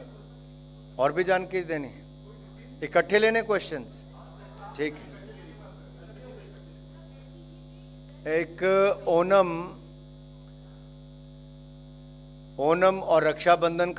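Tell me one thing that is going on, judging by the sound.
A man speaks through a microphone in short bursts, with pauses between.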